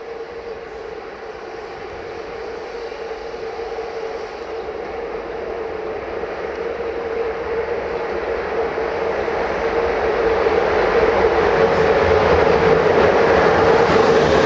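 Train wheels rumble and clatter over the rails, getting closer.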